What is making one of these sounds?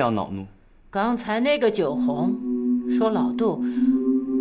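A woman answers in a cold, steady voice.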